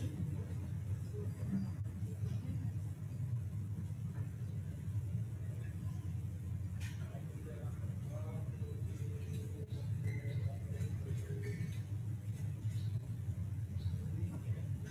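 A crowd of people murmurs quietly in a large room.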